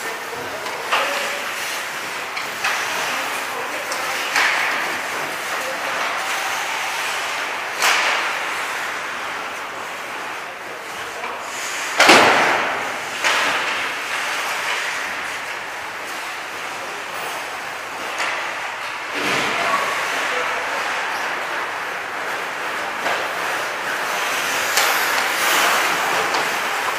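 Pucks and sticks clack sharply, echoing in a large hall.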